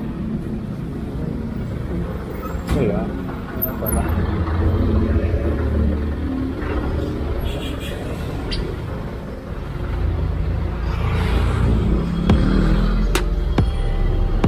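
Jeepney engines rumble and idle in traffic.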